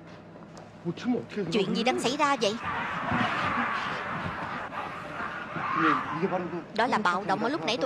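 A crowd shrieks and screams wildly.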